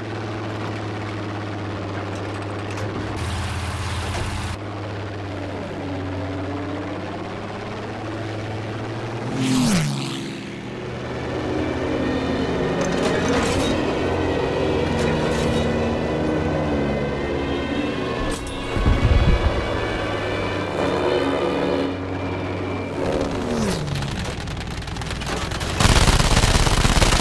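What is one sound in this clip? A propeller plane's engine drones steadily throughout.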